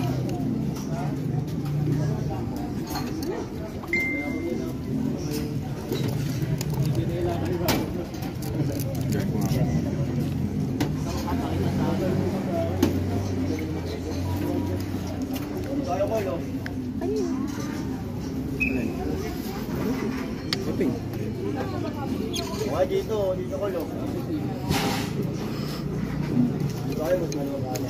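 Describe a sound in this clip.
A metal spoon clinks against a bowl.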